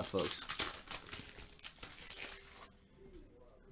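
Plastic wrapping crinkles and rustles as hands tear it open.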